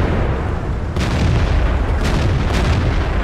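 A tank cannon fires with sharp booms.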